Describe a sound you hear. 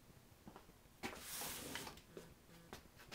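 A plastic sheet rustles and crinkles as it is handled.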